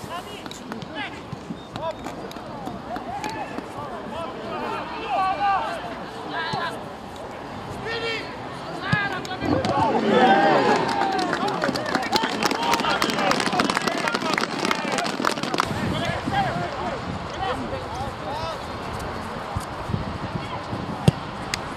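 Men shout to one another from across an open field outdoors.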